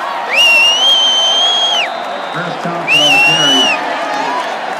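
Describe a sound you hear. Fans whistle shrilly close by.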